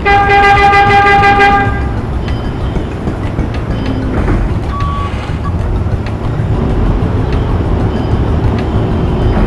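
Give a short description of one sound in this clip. A forklift engine rumbles low and steady.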